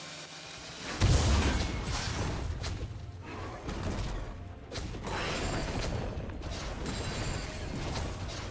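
Fighting sound effects clash and burst in quick bursts.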